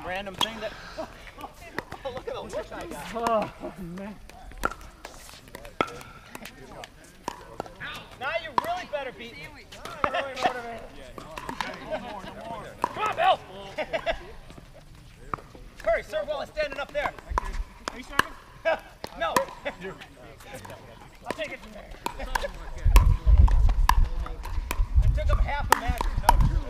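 Paddles strike a ball with sharp pops.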